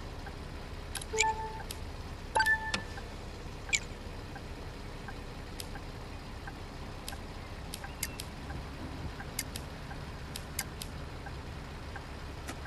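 Short electronic clicks and beeps sound as buttons are pressed.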